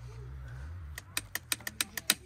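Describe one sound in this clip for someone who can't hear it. A handlebar lever clicks under a hand.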